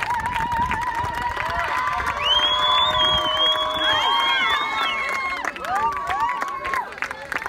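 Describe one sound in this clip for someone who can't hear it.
A group of teenage girls cheer and chant loudly outdoors nearby.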